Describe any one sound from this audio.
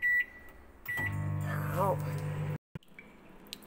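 A microwave hums steadily.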